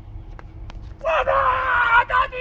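A young man lets out a loud, drawn-out yell.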